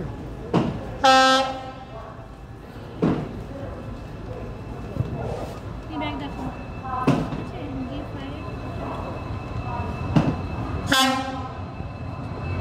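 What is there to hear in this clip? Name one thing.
A train horn blares loudly twice.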